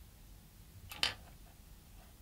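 Small metal parts click softly together.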